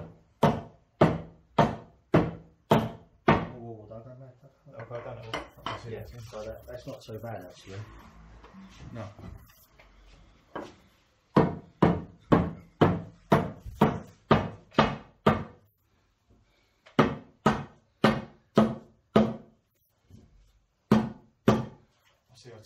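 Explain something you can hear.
A rubber mallet taps on stone in a steady series of sharp knocks.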